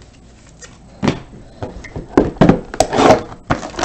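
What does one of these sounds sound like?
Cardboard boxes knock and rustle as hands handle them.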